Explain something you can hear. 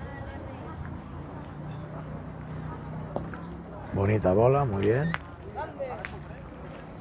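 People chatter in the distance outdoors.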